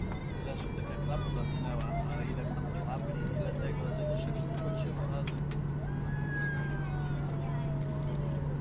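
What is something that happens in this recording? A steady engine hum drones on inside an aircraft cabin.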